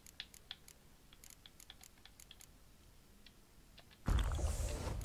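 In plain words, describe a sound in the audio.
Soft menu clicks tick quietly.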